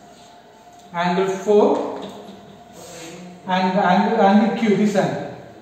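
A man speaks loudly and clearly, explaining in a teacher's manner.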